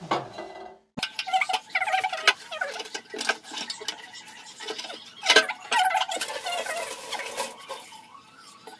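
A metal stove part clanks and rattles as it is handled.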